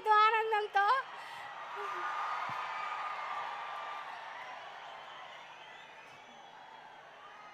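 A large crowd cheers and claps.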